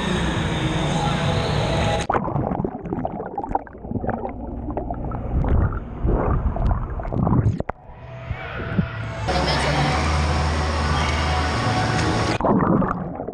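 Water splashes and sloshes close by, echoing loudly.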